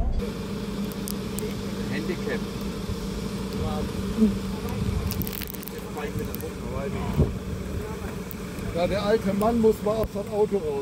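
A van engine idles steadily nearby.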